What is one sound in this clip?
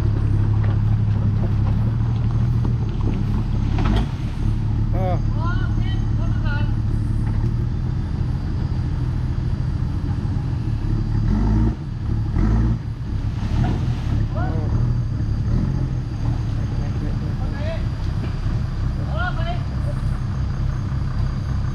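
An off-road vehicle's engine rumbles and revs as it climbs a muddy track.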